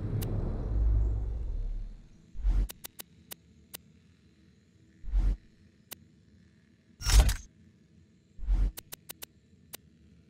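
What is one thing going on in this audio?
Short electronic clicks tick as a menu is scrolled.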